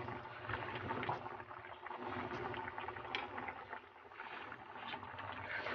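A pot of liquid simmers and bubbles.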